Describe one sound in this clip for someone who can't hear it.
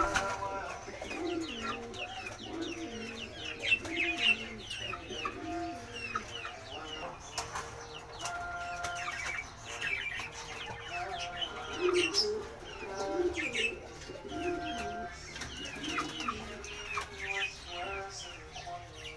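Young chickens peep and cheep repeatedly, close by.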